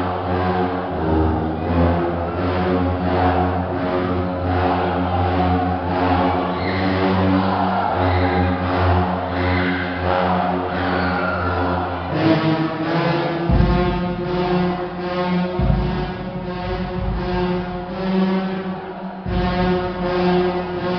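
A brass band plays loudly in a large echoing hall.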